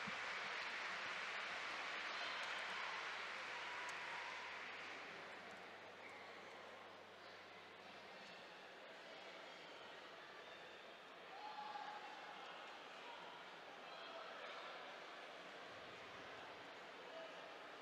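A crowd cheers and roars in a large echoing hall, loudest at first and then settling.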